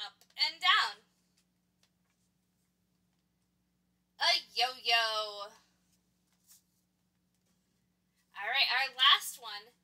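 A young woman speaks brightly and clearly into a nearby microphone, with short pauses.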